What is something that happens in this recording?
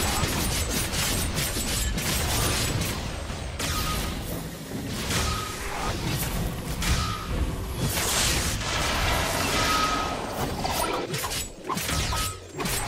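Rapid electronic slashes and impact effects clash again and again.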